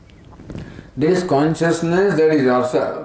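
An elderly man speaks calmly and expressively into a close microphone.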